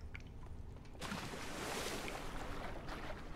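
A body plunges into water with a loud splash.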